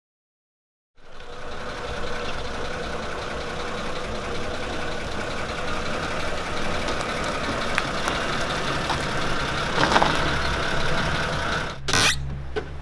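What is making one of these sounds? A car engine rumbles as a car rolls up and stops.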